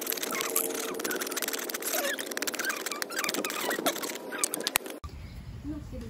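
A knife blade scrapes and whittles a wooden stick.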